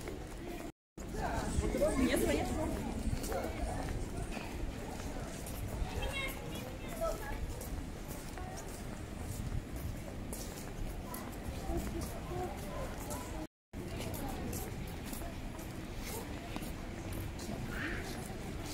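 Footsteps walk along a paved street.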